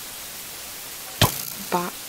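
A sword strikes a zombie with a thud.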